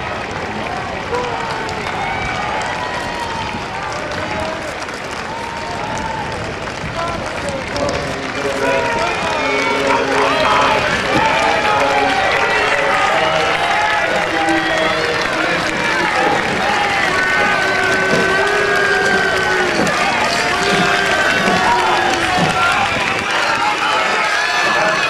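A large crowd cheers and shouts loudly outdoors, growing louder.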